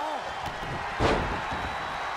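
A body thuds heavily onto a wrestling ring mat.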